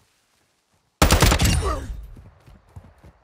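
A short burst of gunfire rings out and echoes away.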